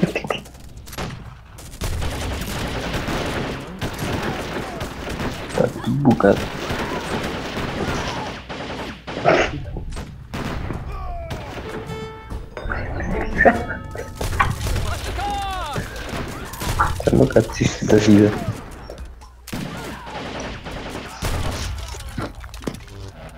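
Musket shots and cannon blasts crack out in a battle.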